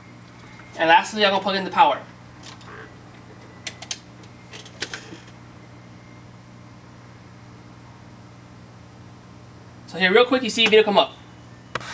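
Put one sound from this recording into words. A computer fan hums steadily.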